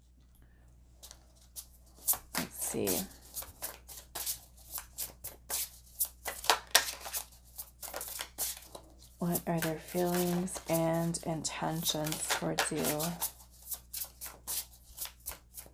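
Playing cards riffle and slap as they are shuffled close by.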